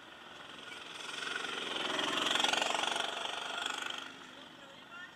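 Another go-kart roars past and fades.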